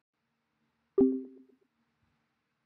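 A short electronic chime rings once and quickly fades.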